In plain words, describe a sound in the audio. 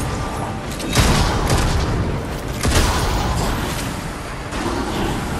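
Loud explosions boom.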